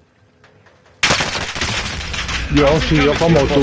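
Gunfire rattles loudly and close.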